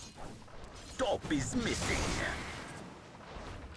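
Game spell effects whoosh loudly.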